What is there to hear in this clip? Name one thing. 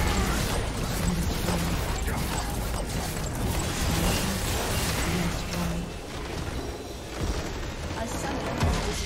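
Magic blasts crackle and clash in a busy fight.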